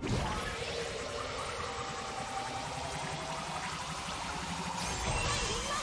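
Game sound effects of spells and attacks play steadily.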